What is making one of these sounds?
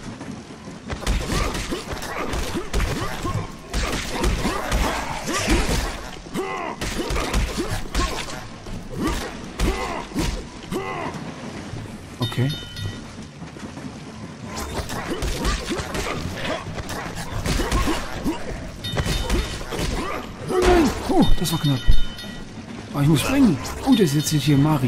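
Creatures snarl and screech.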